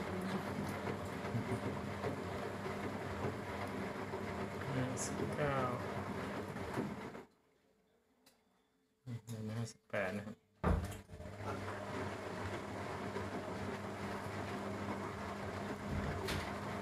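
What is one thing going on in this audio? A washing machine hums and churns nearby, briefly falling silent before starting up again.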